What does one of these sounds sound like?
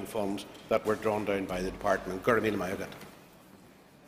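A middle-aged man speaks firmly into a microphone in a large chamber.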